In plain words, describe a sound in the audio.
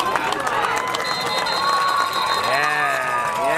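A referee's whistle blows a steady shrill note.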